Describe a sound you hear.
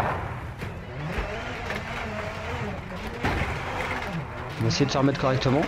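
A rally car engine revs and shifts gears.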